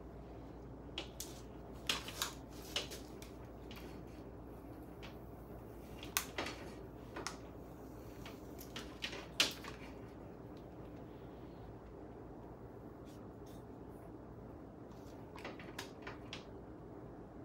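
A hair straightener clacks and slides through hair now and then.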